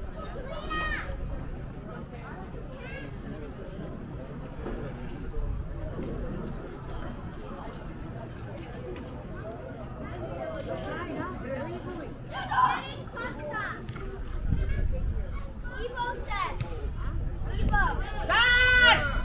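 Young women shout calls to each other across an open outdoor field.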